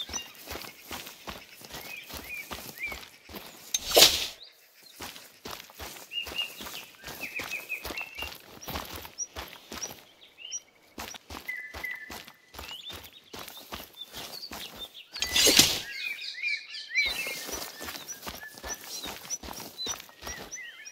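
Footsteps brush steadily through tall plants.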